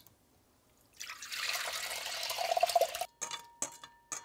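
Rice and water pour into a pot.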